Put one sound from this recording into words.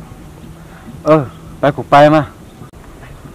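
A young man calls out loudly nearby.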